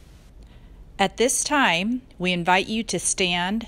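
A woman speaks steadily close to a microphone.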